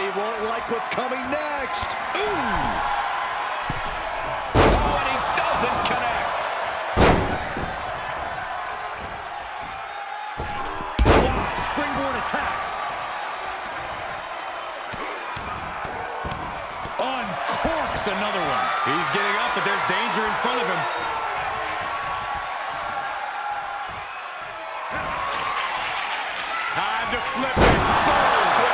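A large crowd roars and cheers throughout.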